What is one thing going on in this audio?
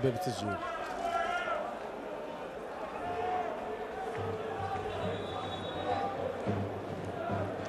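A stadium crowd murmurs and chants steadily outdoors.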